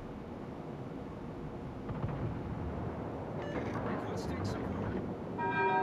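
Distant explosions rumble.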